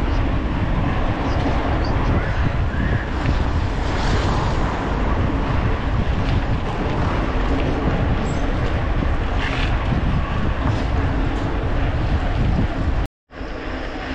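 Bicycle tyres roll steadily over asphalt.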